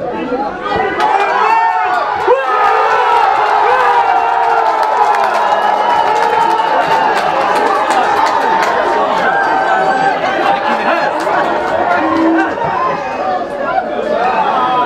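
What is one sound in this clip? A small crowd cheers and calls out.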